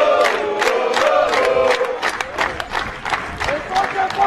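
A crowd claps rhythmically.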